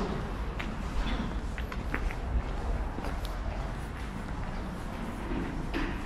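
A bus engine rumbles as the bus drives slowly past nearby.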